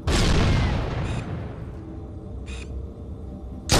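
A rifle scope clicks as it zooms in.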